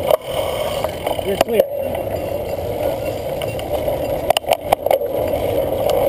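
A cyclocross bicycle's drivetrain rattles and clicks over bumps.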